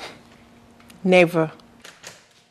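A young woman speaks with surprise, close by.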